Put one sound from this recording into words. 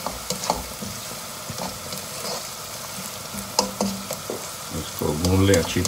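A spatula scrapes and taps against a pan while stirring.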